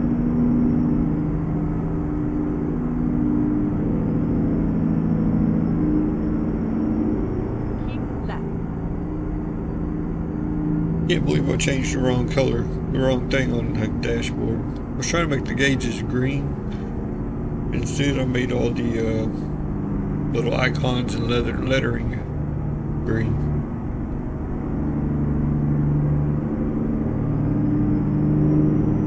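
A truck engine hums steadily at low revs.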